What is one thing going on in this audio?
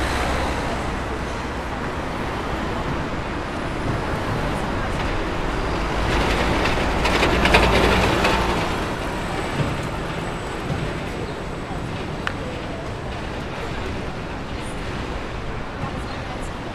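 Steady city traffic rumbles outdoors.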